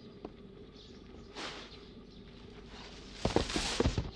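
A shovel scrapes and tosses grain.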